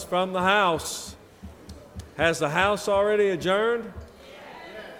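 A man speaks through a microphone, loud and echoing in a large hall.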